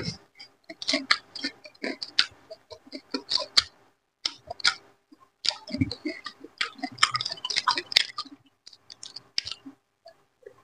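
A man chews and smacks his lips loudly close to a microphone.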